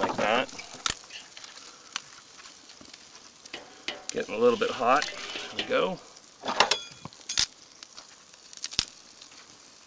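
Metal tongs clink against a grill grate.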